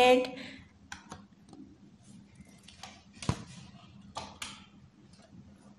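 A stiff paper card rustles and taps as it is handled.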